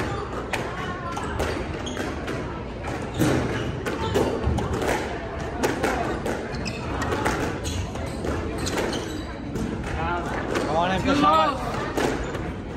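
A squash ball smacks off rackets and walls, echoing in a hard room.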